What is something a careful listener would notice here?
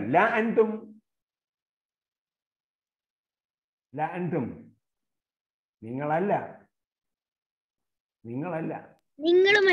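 An elderly man recites slowly in short phrases over an online call, with pauses between them.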